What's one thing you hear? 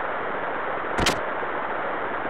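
A door clicks open.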